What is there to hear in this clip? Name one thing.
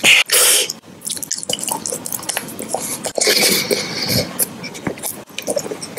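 A man crunches on a hard chocolate lollipop.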